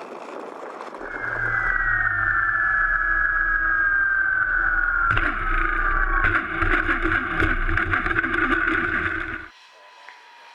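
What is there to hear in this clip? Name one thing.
Wind buffets loudly against a close microphone.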